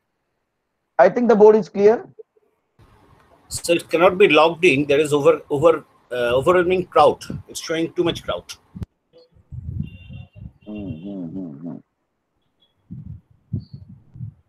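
Men talk in turn over an online call.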